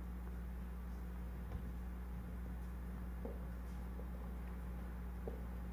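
Footsteps tap softly across a hard floor in a large, quiet room.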